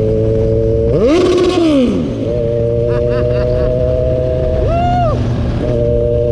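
A motorcycle engine revs up and drops back briefly.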